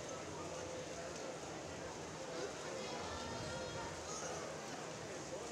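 Swimmers splash through the water.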